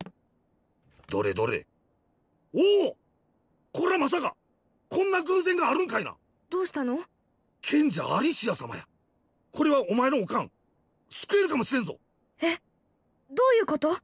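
A young boy speaks with surprise, close by.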